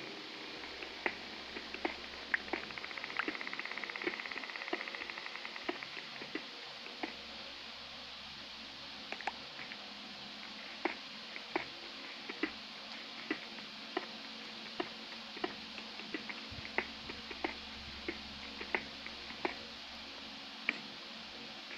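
A pickaxe chips at stone in quick, repeated knocks.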